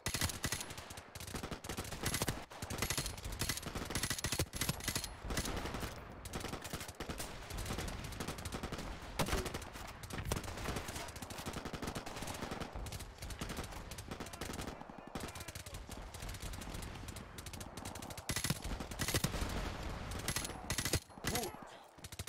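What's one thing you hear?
Gunfire from a video game crackles in rapid bursts.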